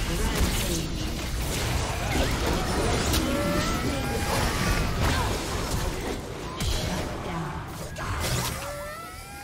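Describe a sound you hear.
Spell effects and blows clash and whoosh in a fast fight.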